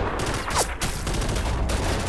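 Gunshots crack nearby with echoes.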